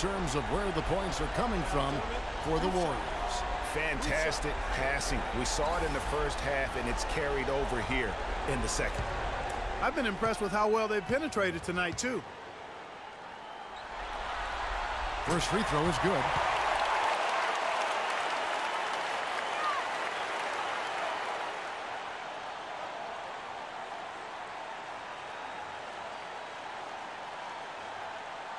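A large arena crowd murmurs and cheers steadily.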